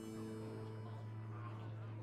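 A card game sounds a bright chiming effect as a card is played.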